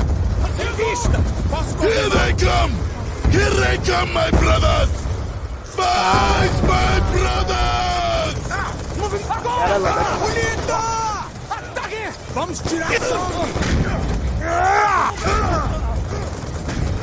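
A man shouts loudly with animation.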